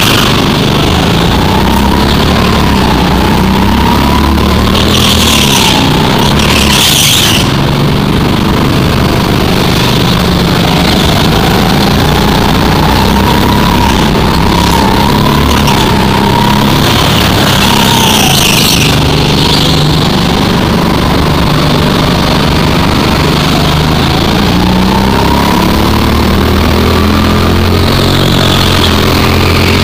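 A go-kart engine revs up and down as it drives through corners.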